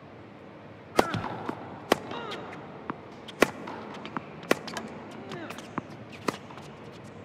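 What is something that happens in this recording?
A tennis ball is struck back and forth with rackets in an indoor arena.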